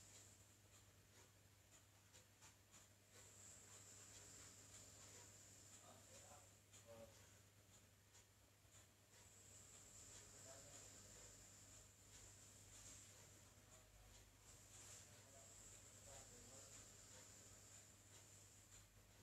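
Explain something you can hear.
Sound plays faintly from a laptop's speakers.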